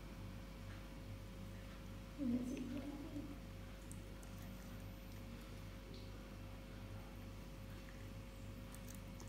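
A cat softly licks and chews food.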